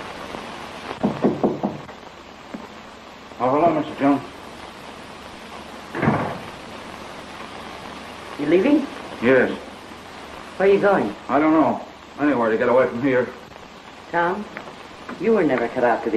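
A man speaks calmly, heard through an old, hissy film soundtrack.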